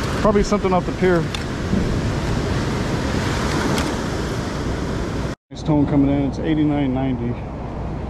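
Sand rattles through a metal sifting scoop.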